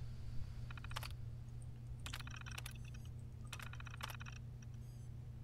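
A computer terminal chirps and clicks as text scrolls onto it.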